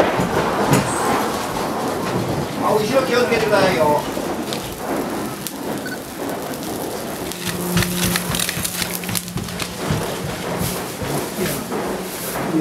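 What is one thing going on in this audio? A fire roars and crackles, with sharp pops.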